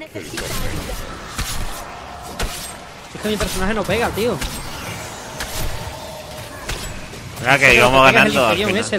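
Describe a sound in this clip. Magic spells zap and burst during a fight.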